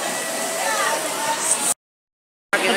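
A crowd of people chatters in the open air.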